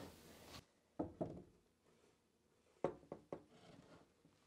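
A wooden panel knocks against a wall.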